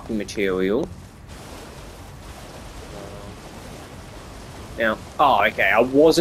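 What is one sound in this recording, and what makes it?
Water splashes under a galloping horse.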